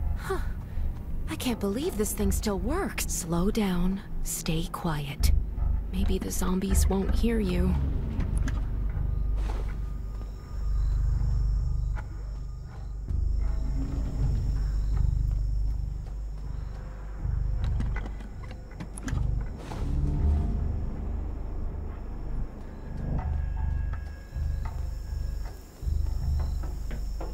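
Footsteps thud steadily on the ground.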